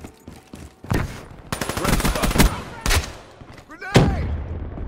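Gunfire rattles in rapid bursts close by.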